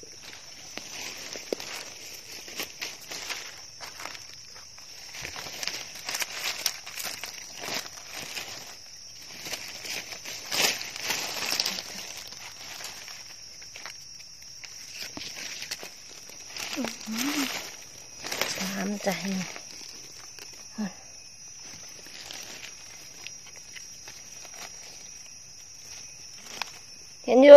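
Dry leaves rustle and crunch as someone moves through them.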